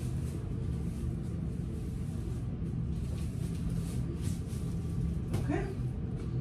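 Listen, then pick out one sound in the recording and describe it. Plastic-backed pads rustle softly as they are smoothed out.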